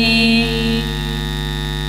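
A man sings a long note through a loudspeaker.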